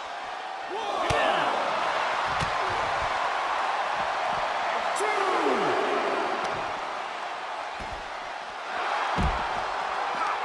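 Wrestlers strike each other with hard smacks.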